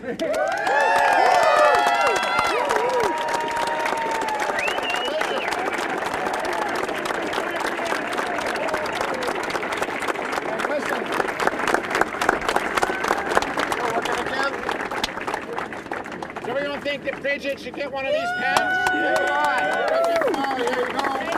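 A crowd cheers and whoops loudly.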